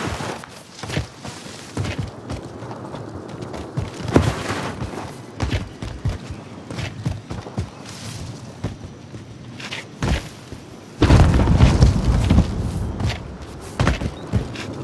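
Footsteps tread quickly over grass and gravel.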